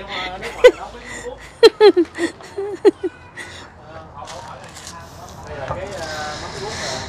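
An elderly woman speaks nearby in a calm voice.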